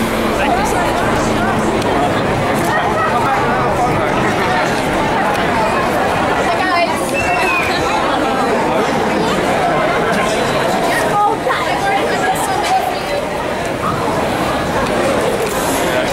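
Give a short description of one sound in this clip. A young woman talks and laughs with fans close by.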